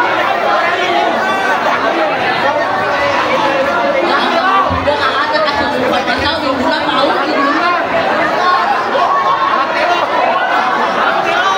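Pop music plays loudly over loudspeakers.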